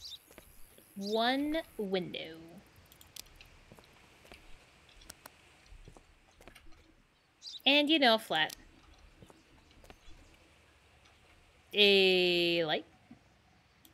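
A young woman speaks in short, animated bursts close to a microphone.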